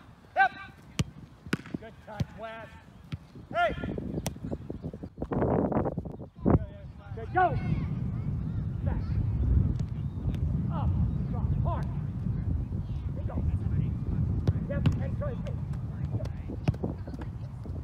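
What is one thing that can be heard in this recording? A soccer ball is kicked with sharp thumps.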